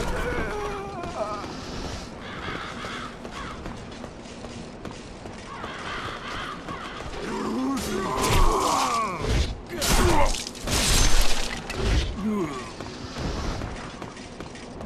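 Armored footsteps clank quickly on stone.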